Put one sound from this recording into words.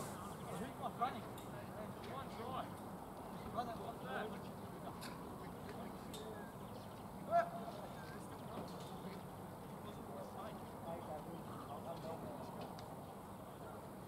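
Men shout to each other far off across an open field.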